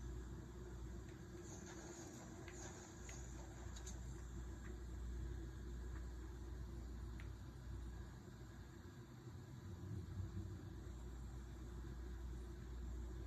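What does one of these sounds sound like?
Video game sounds play quietly from a television.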